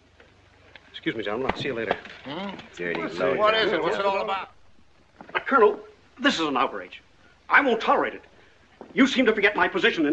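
A middle-aged man speaks loudly with animation.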